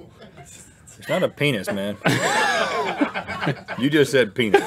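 A man laughs loudly into a nearby microphone.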